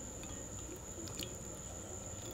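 Thick sauce is poured from a spoon and splatters softly onto food.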